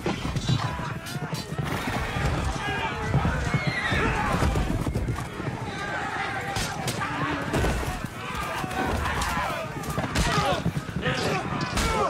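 Many men shout and scream in a battle all around.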